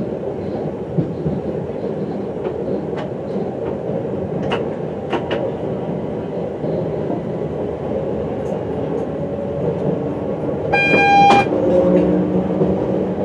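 Wheels click over rail joints now and then.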